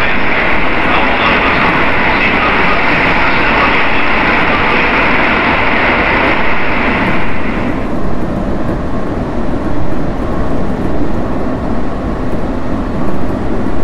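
A train rumbles steadily along the track through a tunnel.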